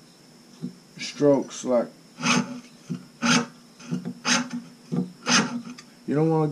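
A fine saw rasps through metal in quick, regular strokes.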